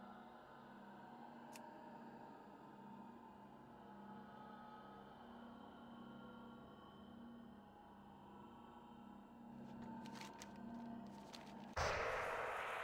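Deep, humming game music plays steadily.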